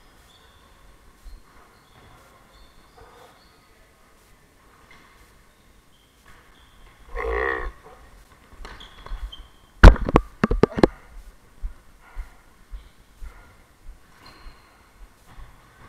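Sneakers squeak on a wooden floor in a large echoing hall.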